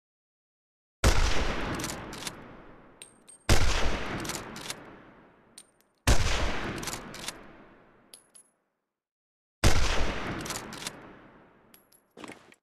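A sniper rifle fires loud shots, each rolling away in a long echo.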